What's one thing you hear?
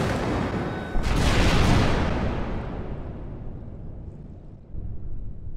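An explosion roars and rumbles away.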